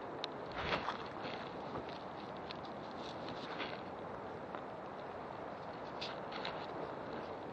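Leaves and branches rustle and brush past.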